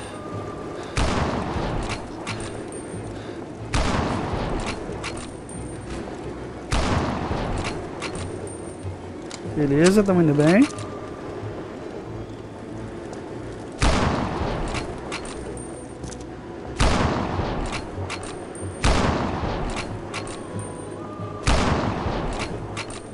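Rifle shots crack loudly, one every few seconds, each echoing briefly.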